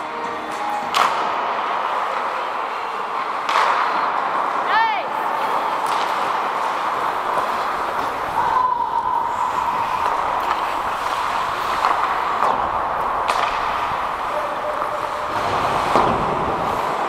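Hockey sticks knock against pucks and the ice, echoing in a large hall.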